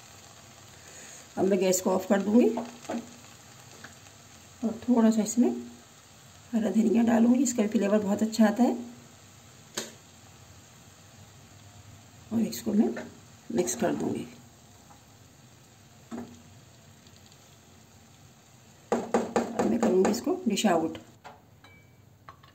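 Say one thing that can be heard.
A spatula scrapes and stirs rice in a metal pan.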